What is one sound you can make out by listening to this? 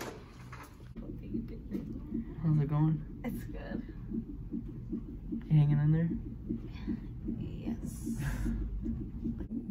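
A heart monitor thumps with a fast, steady beat.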